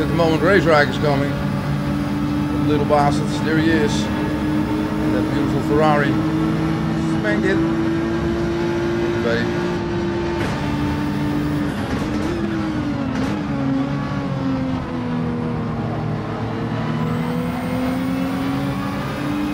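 A racing car engine drones and revs steadily.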